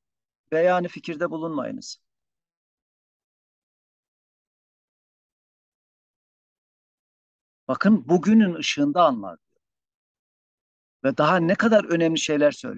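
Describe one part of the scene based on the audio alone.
A man speaks calmly in short phrases, heard close through a microphone.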